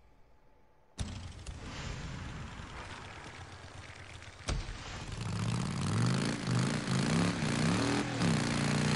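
A motorcycle engine rumbles and revs up.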